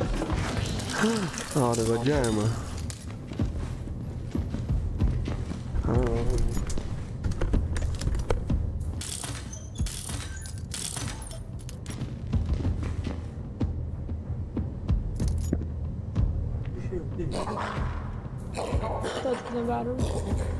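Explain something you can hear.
A young man talks with animation, heard close through a microphone.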